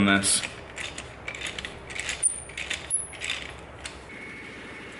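A ratchet wrench clicks and whirs in quick bursts as it turns.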